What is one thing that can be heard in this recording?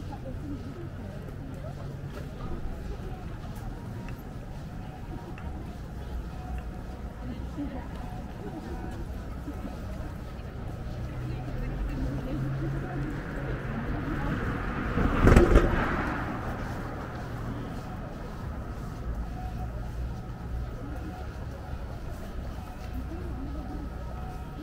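Distant city traffic hums steadily.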